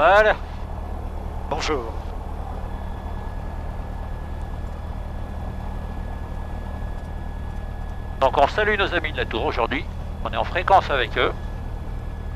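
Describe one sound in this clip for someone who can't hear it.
A man speaks through a headset intercom.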